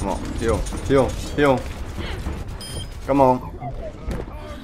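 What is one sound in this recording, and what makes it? A young man shouts excitedly.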